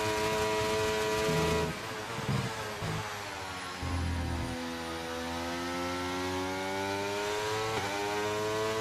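A racing car engine whines loudly, its pitch dropping and then climbing steadily through the gears.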